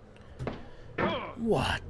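A young man exclaims loudly into a nearby microphone.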